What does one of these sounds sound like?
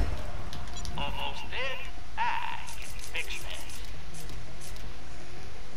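Short electronic blips sound in quick succession.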